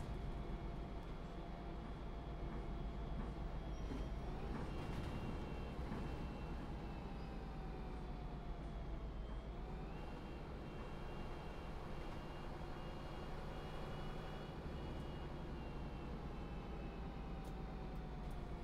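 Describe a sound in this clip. A bus engine drones steadily and rises and falls in pitch as the bus drives along.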